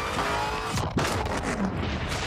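An exhaust backfires with a pop.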